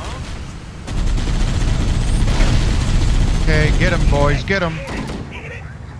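A vehicle engine rumbles as it drives over rough ground.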